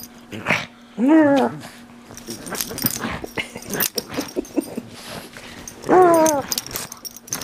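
A squeaky toy squeals sharply twice.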